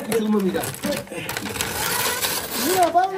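Wrapping paper crinkles and rustles.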